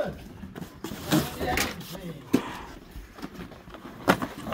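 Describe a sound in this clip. Cardboard flaps rustle and scrape as a box is opened and handled.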